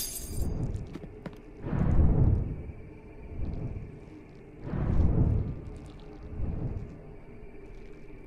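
A magic shield hums and crackles, swelling in low rumbling waves.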